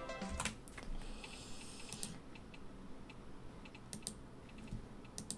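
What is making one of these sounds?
Game menu clicks tick softly, several times.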